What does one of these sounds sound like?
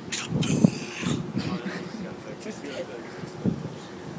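A second teenage boy laughs and talks nearby.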